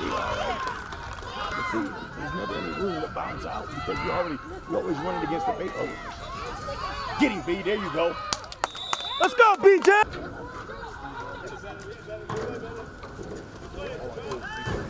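A crowd of spectators talks and cheers outdoors.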